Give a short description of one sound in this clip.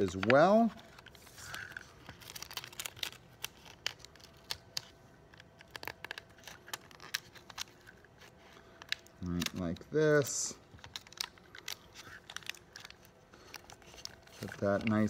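Small plastic parts click and tap together.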